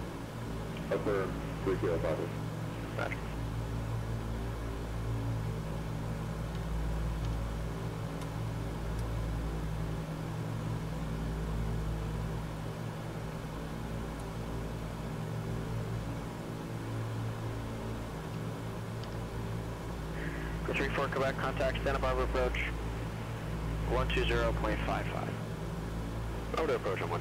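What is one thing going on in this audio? Airplane engines drone steadily in the cockpit.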